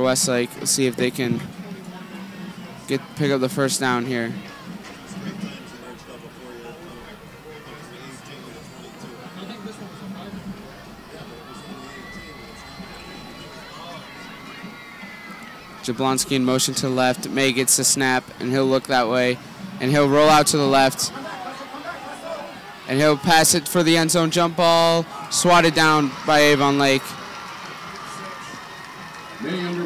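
A crowd murmurs and cheers in an open-air stadium.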